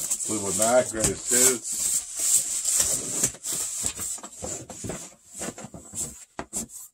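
Cardboard record sleeves rustle and knock as they are flipped through.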